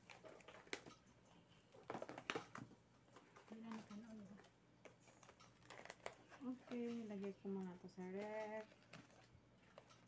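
Plastic cling wrap crinkles and rustles as it is pulled and pressed over a tray.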